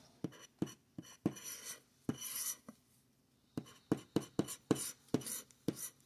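A plastic scraper scratches across a card with short rasping strokes.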